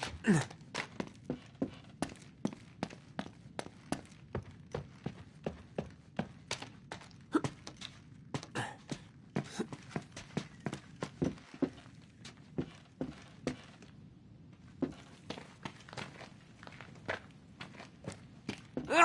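Footsteps crunch quickly over debris and wooden floors.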